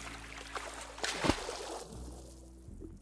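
Water splashes as a swimmer dives under.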